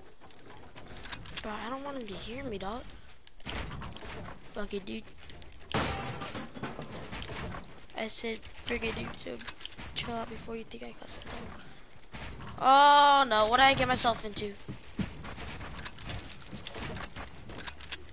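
Building pieces snap into place with quick, sharp clacks.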